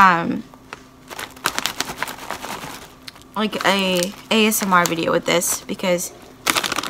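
A snack bag crinkles and rustles.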